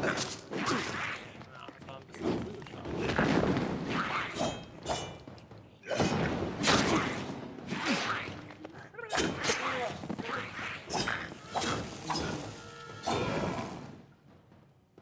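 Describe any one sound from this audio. Small creatures screech and shriek as they are struck.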